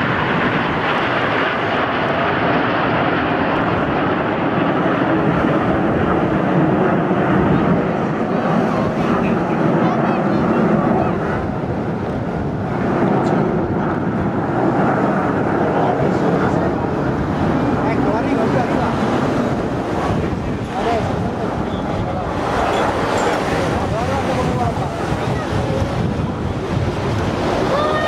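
Jet planes roar overhead.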